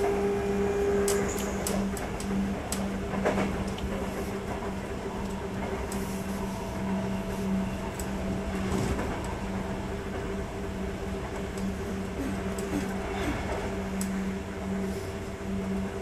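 An electric train's motor hums steadily.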